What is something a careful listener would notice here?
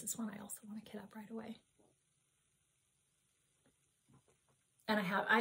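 A woman speaks calmly and warmly into a nearby microphone.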